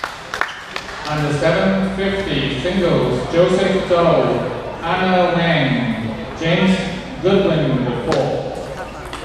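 A young man calls out loudly nearby.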